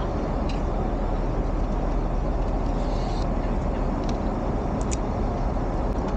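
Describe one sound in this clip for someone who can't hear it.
Wooden chopsticks click together softly.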